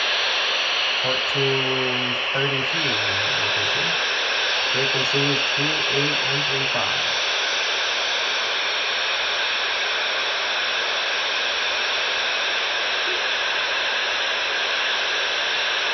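Radio static hisses steadily from a receiver.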